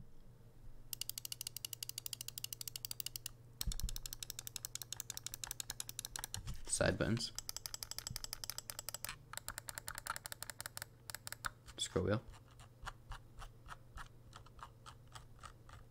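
A computer mouse wheel ticks rapidly close by.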